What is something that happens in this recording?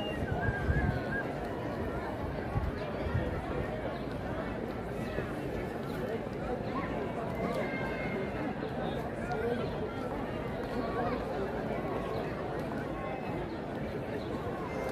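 A large crowd chatters outdoors, many voices of men, women and children mixing.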